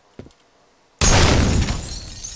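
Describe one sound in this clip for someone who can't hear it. A gun fires a loud burst.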